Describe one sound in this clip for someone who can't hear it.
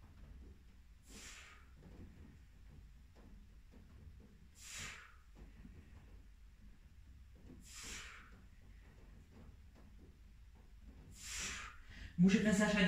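A man breathes out hard with each effort.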